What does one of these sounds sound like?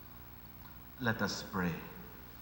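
A man speaks briefly into a microphone in a large echoing hall.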